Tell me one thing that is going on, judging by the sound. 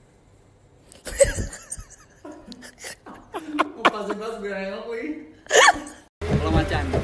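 A young man laughs loudly and freely.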